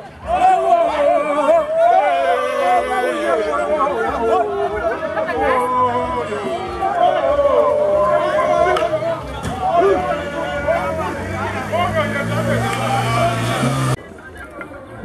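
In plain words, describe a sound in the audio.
A crowd of men and women sing and chant loudly outdoors.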